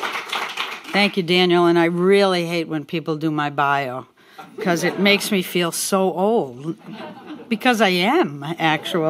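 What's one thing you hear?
An older woman speaks calmly through a microphone.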